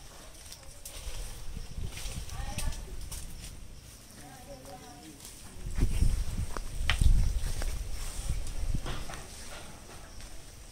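Wind gusts outdoors and rustles leaves.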